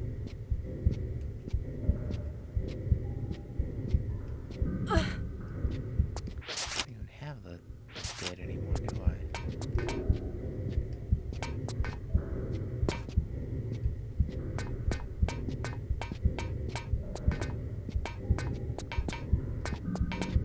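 Footsteps tap quickly on a hard floor, echoing in a closed space.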